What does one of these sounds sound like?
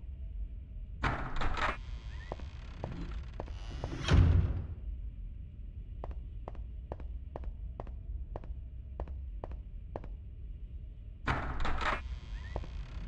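A person clambers up a wall with a rough scuffing noise.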